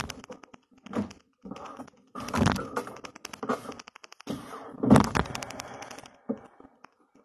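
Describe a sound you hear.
Rustling and knocks sound close by.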